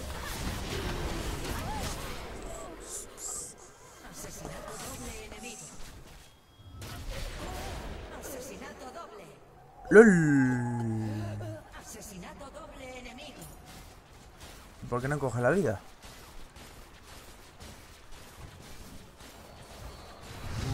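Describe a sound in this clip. Game spell effects crackle and clash during a fight.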